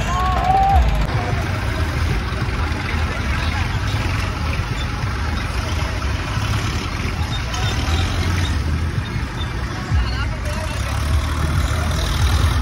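A tractor engine rumbles low and steady.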